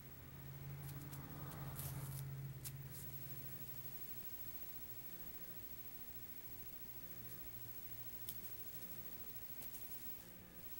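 A kitten's paws patter and scuffle on carpet.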